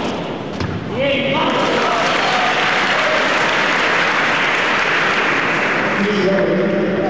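A crowd cheers and applauds loudly.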